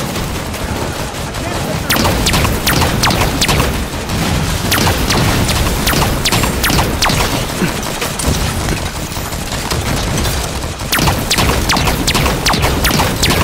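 Rapid gunfire crackles and bursts.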